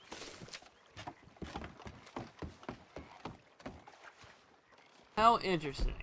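Footsteps thud on a wooden dock.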